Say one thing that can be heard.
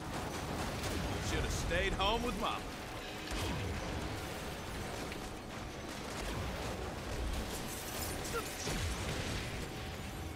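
Explosions boom and crackle nearby.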